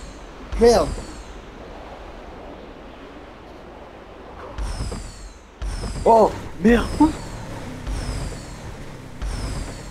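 A car engine roars in bursts.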